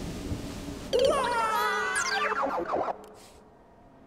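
A whooshing, swirling sound sweeps down as a small figure falls through the air.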